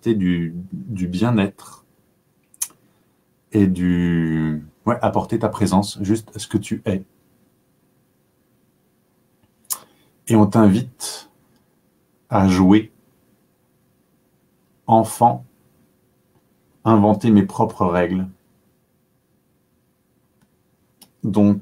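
A man speaks calmly and close to a microphone, with pauses.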